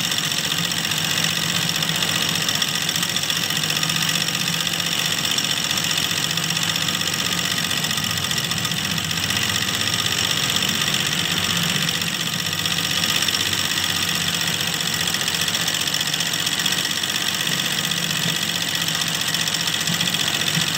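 A sewing machine whirs steadily as its needle stitches rapidly.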